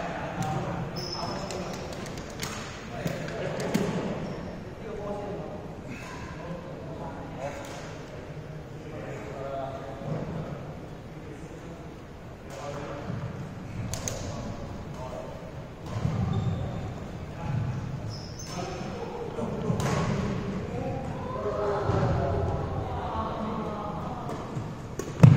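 Young men talk and call out casually in a large echoing hall.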